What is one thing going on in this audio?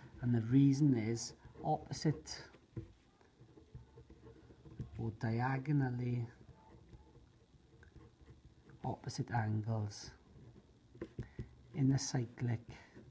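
A marker pen squeaks and scratches on paper.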